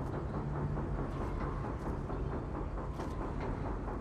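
Hands grip and scrape against rough stone.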